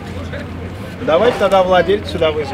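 A man speaks nearby in a firm voice.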